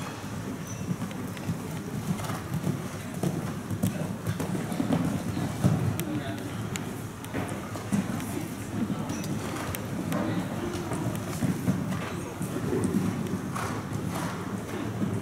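A horse's hooves thud on soft sand as it canters.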